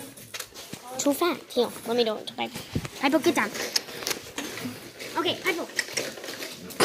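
A young girl talks with animation close to the microphone.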